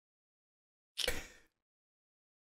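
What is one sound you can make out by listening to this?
A man gives a short laugh close to a microphone.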